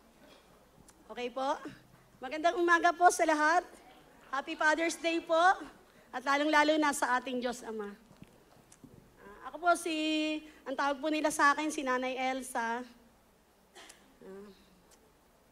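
A woman speaks with feeling through a microphone.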